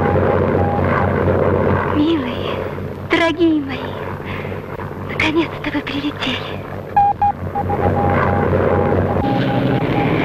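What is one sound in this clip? Aircraft engines drone overhead.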